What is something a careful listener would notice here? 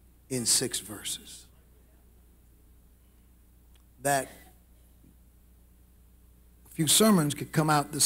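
A man preaches with emphasis into a microphone, in bursts with pauses, in a large echoing hall.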